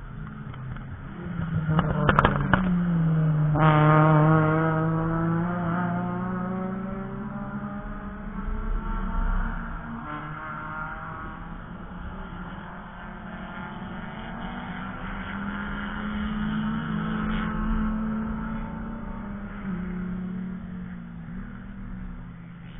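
Race car engines roar past at speed, one after another, their pitch dropping as they pass.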